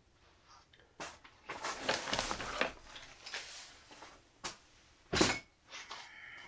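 A fabric bag rustles as it is handled.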